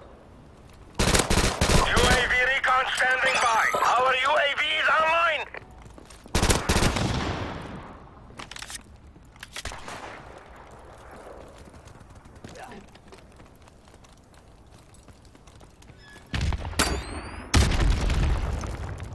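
Automatic gunfire rattles in loud, short bursts.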